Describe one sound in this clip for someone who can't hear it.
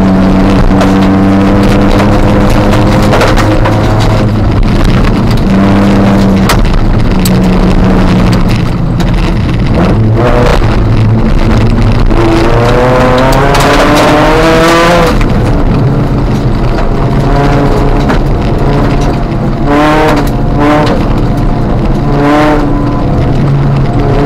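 A car engine roars loudly up close, revving up and down through the gears.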